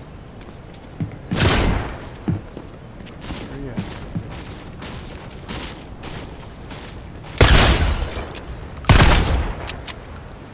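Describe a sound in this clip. A pickaxe strikes rock with sharp thuds.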